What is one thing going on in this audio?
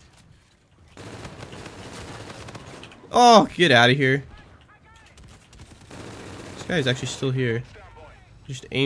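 A gun fires in rapid bursts.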